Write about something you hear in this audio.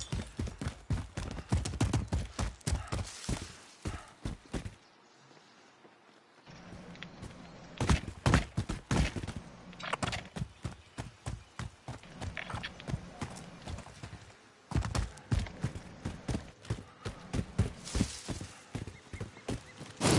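Footsteps run quickly over dirt and rock.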